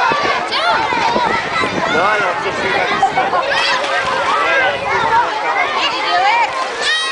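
Many children shout and squeal in the distance.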